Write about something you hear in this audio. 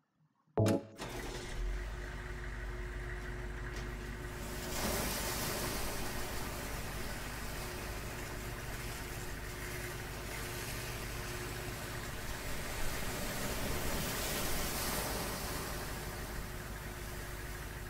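A large machine starts up and rumbles steadily.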